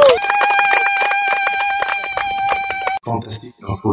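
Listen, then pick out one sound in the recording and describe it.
A group of men clap their hands.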